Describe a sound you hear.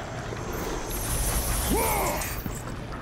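A flaming chain whooshes through the air.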